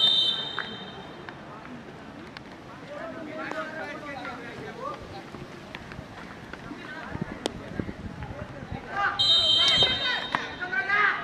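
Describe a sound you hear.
A referee blows a whistle in sharp bursts.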